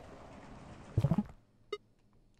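A soft whoosh sounds as a game menu opens.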